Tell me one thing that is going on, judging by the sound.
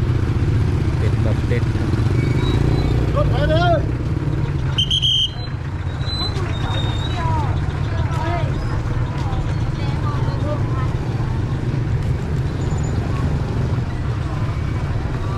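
Men and women chatter and call out in a bustling crowd outdoors.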